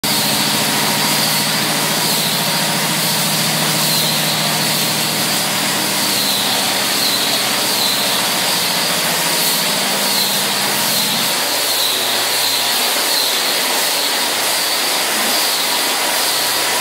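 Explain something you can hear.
An angle grinder whines as it sands a wooden parquet floor.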